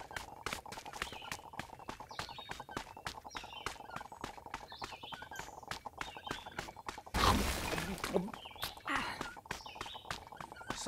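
Quick light footsteps patter on a stone floor.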